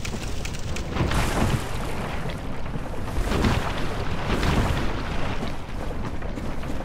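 Armoured footsteps splash through shallow water.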